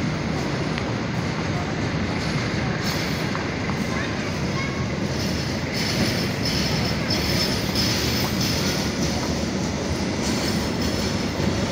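A train rumbles past steadily on the tracks nearby.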